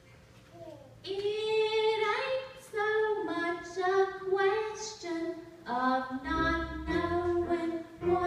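A choir of women and men sings together in a hall.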